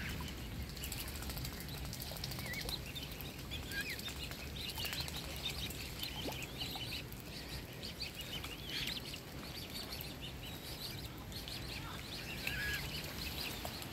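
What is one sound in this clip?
Cygnets peep in high, chirping calls.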